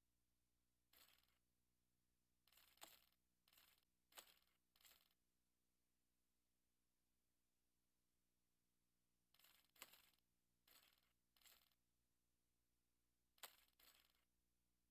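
Stone tiles slide into place with short scraping clicks.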